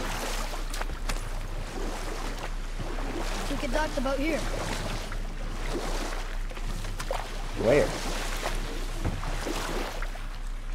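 Oars splash softly in water.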